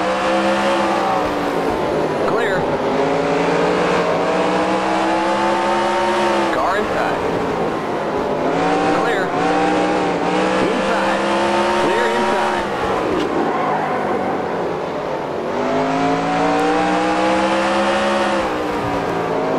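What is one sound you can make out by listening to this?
A race car engine roars, rising and falling in pitch as the car speeds up and slows down.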